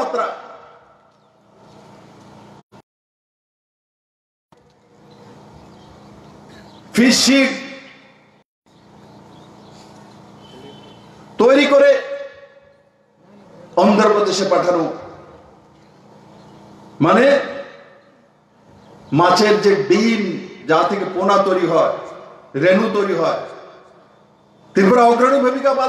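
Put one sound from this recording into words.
A man speaks forcefully through a loudspeaker outdoors, in bursts with pauses.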